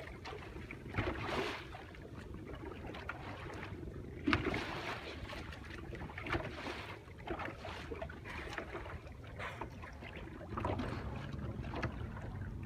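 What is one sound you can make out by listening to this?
Waves lap and splash on open water.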